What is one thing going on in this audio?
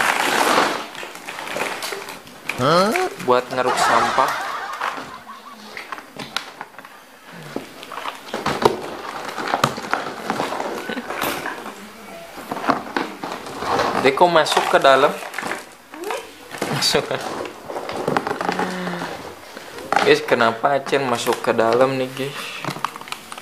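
Cardboard rustles and scrapes as a box is handled close by.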